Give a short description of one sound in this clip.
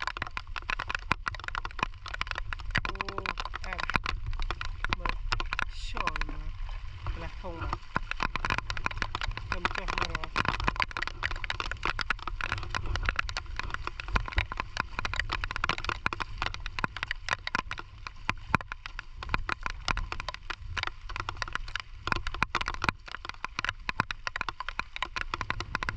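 Rain patters steadily on wet ground and water.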